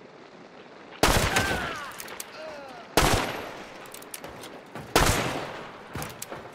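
A gun fires several loud shots that echo away.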